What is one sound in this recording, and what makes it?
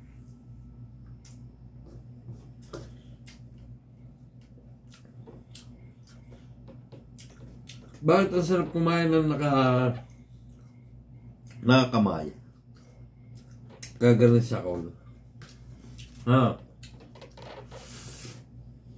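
A man chews and smacks his lips while eating.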